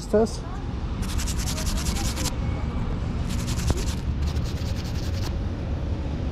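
An eraser rubs and scratches against a coin in short bursts.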